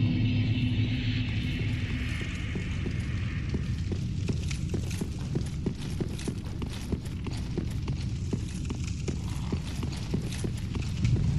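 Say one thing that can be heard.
Armored footsteps clank rhythmically on stone.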